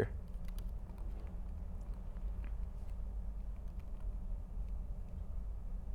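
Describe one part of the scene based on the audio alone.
Laptop keys click softly as someone types.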